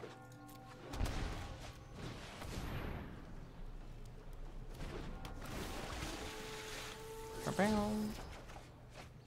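A magical whooshing effect sweeps across with shimmering tones.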